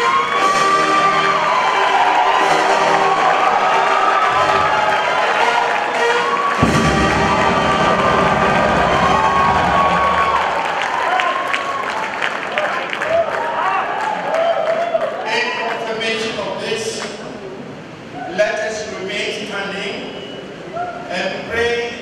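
A man prays aloud in a solemn, chanting voice through a microphone, echoing in a large hall.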